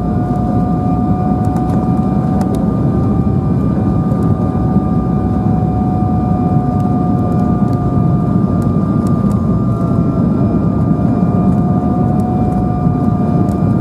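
Jet engines whine with a constant high tone.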